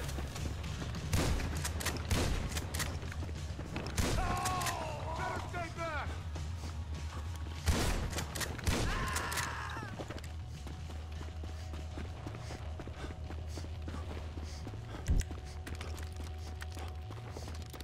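Footsteps crunch on dry dirt at a steady walking pace.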